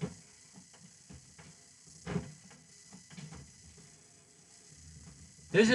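A young man exhales smoke with a soft breathy hiss.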